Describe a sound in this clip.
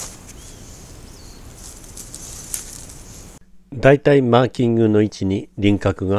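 Pruning shears snip through twigs.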